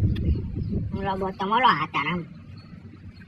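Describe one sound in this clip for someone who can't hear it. A young man exclaims with surprise.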